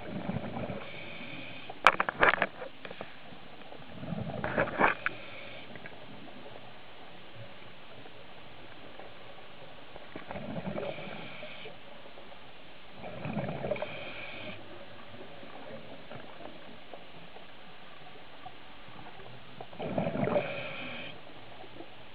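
Bubbles rush and gurgle underwater in short bursts.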